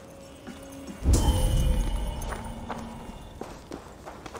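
A deep magical whoosh bursts and slowly fades.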